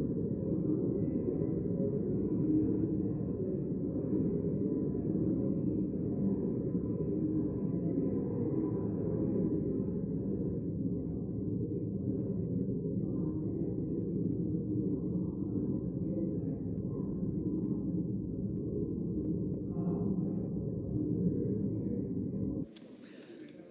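Many people murmur and chat quietly in a large echoing hall.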